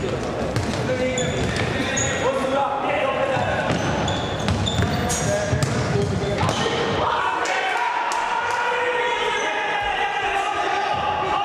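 Men shout to each other across an echoing hall.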